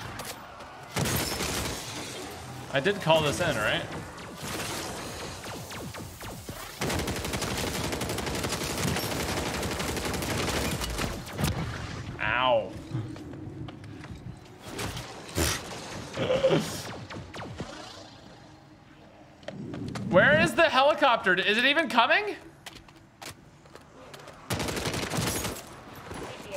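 Gunfire from a game rattles in rapid bursts.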